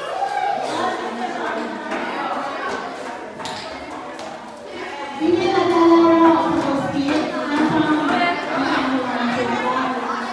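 Music with singing plays loudly in a large echoing hall.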